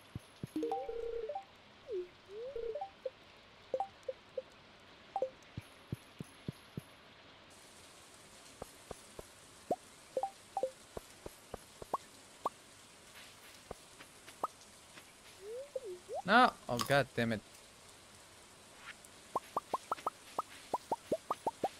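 Short video game blips and chimes sound again and again.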